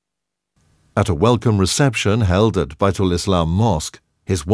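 A man speaks into a microphone, heard loud and close through a loudspeaker.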